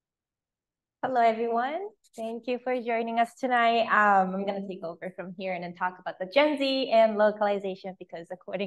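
A woman speaks with animation into a microphone, heard through an online call.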